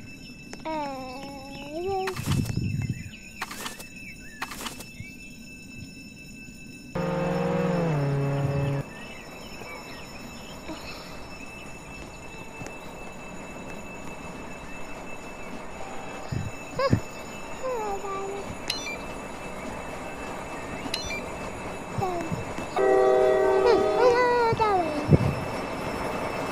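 A young boy talks with animation into a headset microphone, close by.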